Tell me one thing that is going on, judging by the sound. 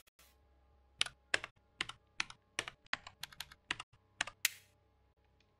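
Keys click as someone types on a keyboard.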